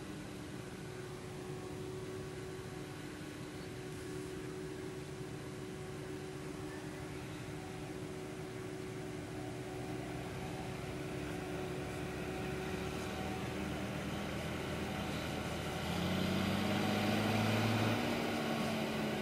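A tractor engine drones steadily and grows louder as it comes closer.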